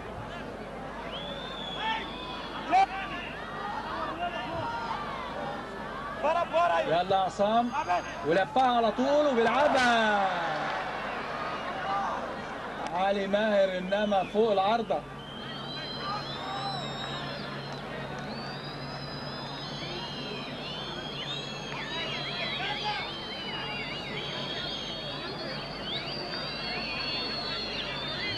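A large crowd murmurs and cheers far off in an open stadium.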